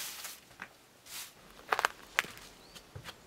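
Footsteps crunch on a dry forest floor.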